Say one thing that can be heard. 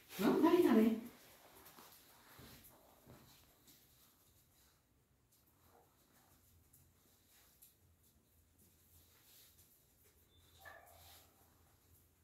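A small dog's claws click on a tiled floor.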